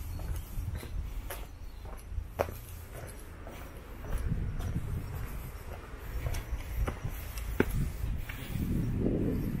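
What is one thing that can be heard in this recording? Footsteps crunch along a dirt path outdoors.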